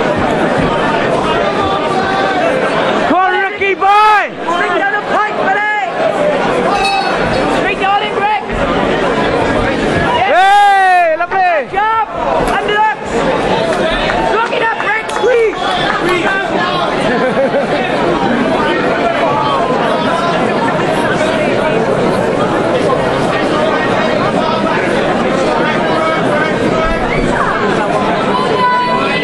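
A large crowd cheers and shouts steadily in a big echoing hall.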